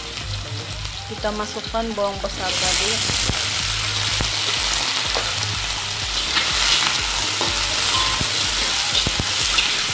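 A spatula scrapes and clinks against a metal pan.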